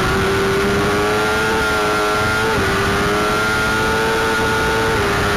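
A racing motorcycle engine roars loudly up close, climbing in pitch and dropping briefly with each gear change.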